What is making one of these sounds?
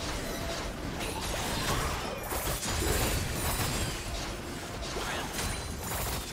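Game spells whoosh and crackle in a fast fight.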